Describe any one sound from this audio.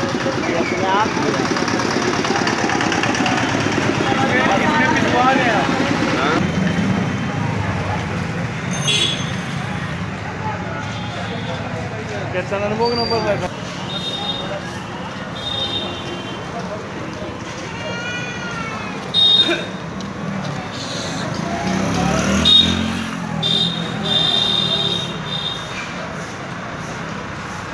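Men talk nearby in a busy street.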